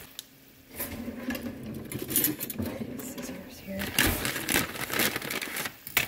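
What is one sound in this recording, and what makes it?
Metal utensils rattle in a drawer.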